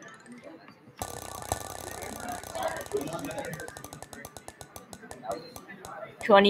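A prize wheel ticks rapidly as it spins, the clicks slowing down.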